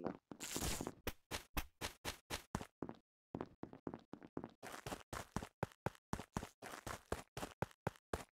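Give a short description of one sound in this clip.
Light footsteps patter quickly and steadily.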